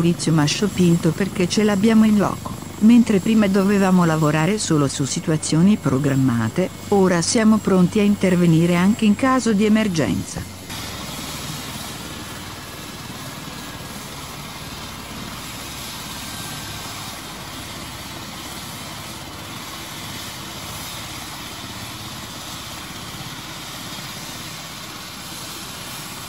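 A helicopter's rotor whirs steadily nearby.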